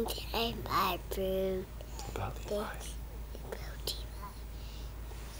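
A toddler babbles and talks up close.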